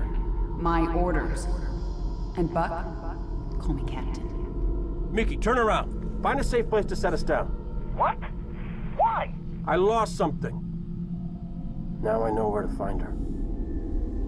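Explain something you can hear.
Men speak urgently.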